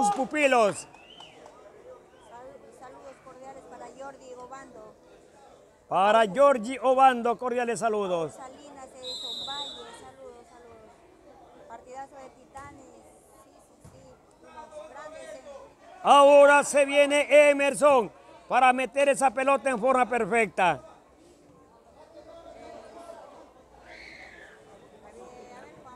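A crowd of people talks in a low murmur outdoors.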